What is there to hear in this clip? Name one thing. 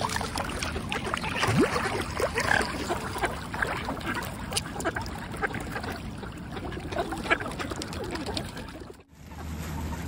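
Mute swans and ducks splash and paddle in shallow water.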